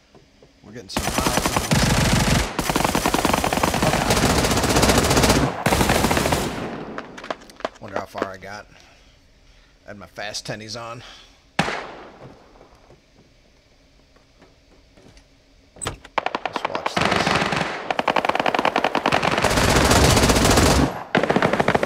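A submachine gun fires in long, rapid bursts.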